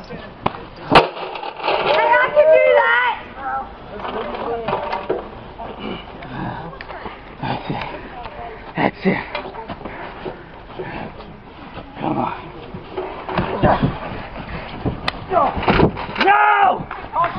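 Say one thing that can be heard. A body slams down onto a padded mat with a heavy thud.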